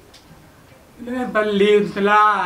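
A young man sings loudly close by.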